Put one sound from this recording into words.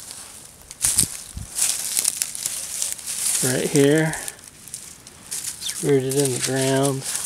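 Footsteps crunch through dry leaves and twigs outdoors.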